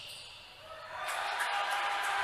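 A crowd cheers loudly in an echoing hall.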